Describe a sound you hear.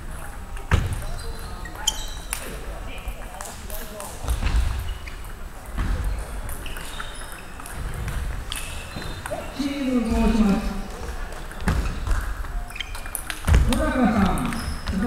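Ping-pong balls click off paddles and a table in a large echoing hall.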